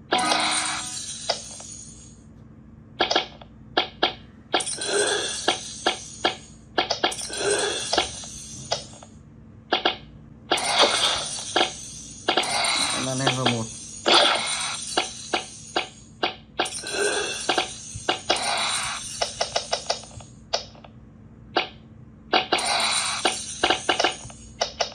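A phone game plays short, bright chiming and popping effects in quick bursts.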